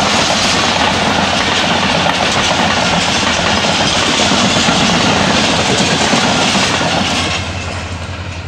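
A diesel locomotive roars loudly as it passes close by.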